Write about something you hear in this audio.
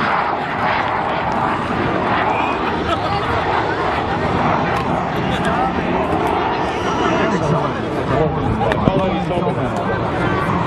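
A jet engine roars as a plane flies past.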